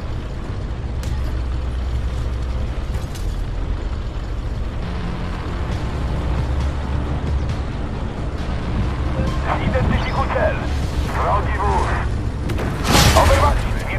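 A tank engine rumbles steadily and low.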